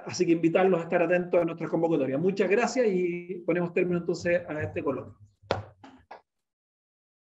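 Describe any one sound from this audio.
A man speaks calmly to a group in a room, heard through a conference microphone.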